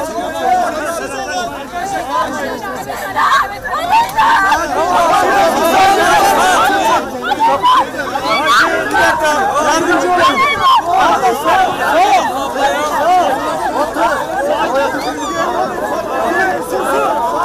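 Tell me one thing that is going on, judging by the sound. A crowd of men shout and call out excitedly close by, outdoors.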